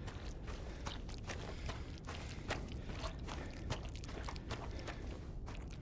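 Footsteps crunch slowly on gravel.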